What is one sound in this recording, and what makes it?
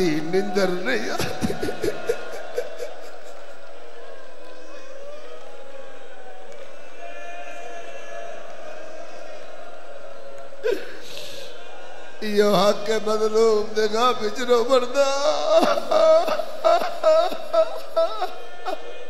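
Men in a large crowd beat their chests in rhythm.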